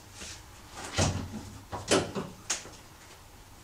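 A car hood unlatches and creaks open with metallic clunks.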